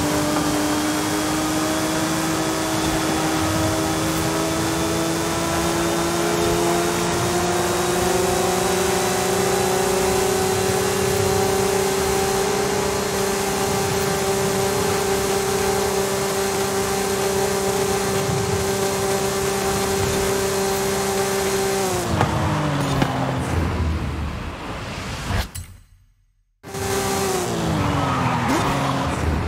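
A sports car engine roars at high, steady revs, then drops sharply as the car brakes.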